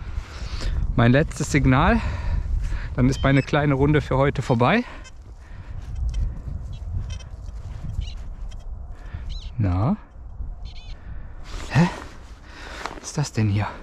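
A metal detector gives warbling beeps.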